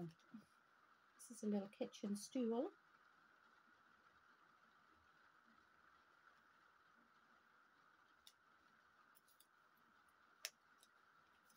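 Small plastic parts click together.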